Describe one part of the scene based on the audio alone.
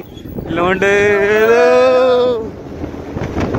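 A young man sings loudly outdoors.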